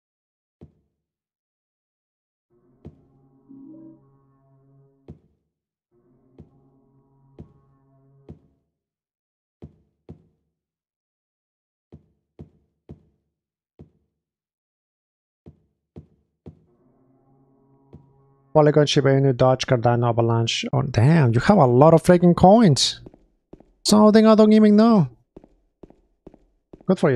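Footsteps thud slowly and evenly on a hard floor.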